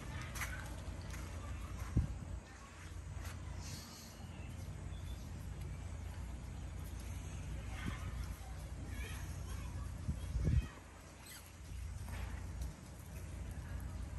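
Dogs sniff and scuffle on dry ground outdoors.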